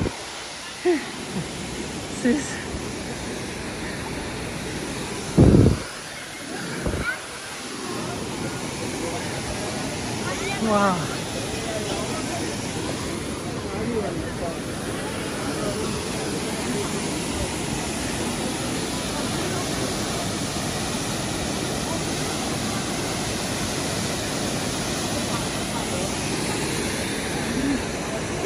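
A waterfall roars steadily nearby.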